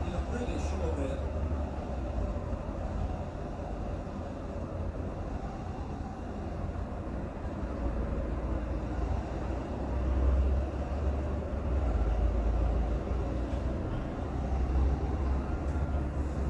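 A stadium crowd roars steadily through a television loudspeaker.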